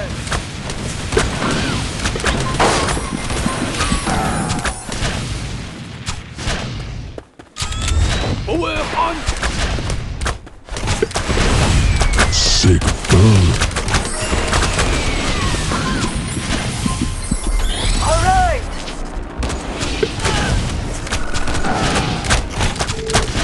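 Game battle sounds of clashing attacks, blasts and impacts play steadily.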